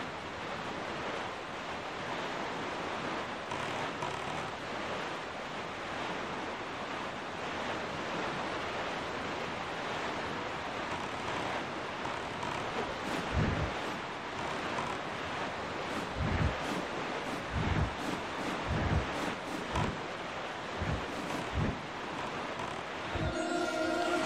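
Waves splash steadily against a small boat's hull as it cuts through the sea.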